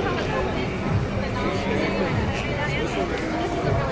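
A laptop lid creaks open.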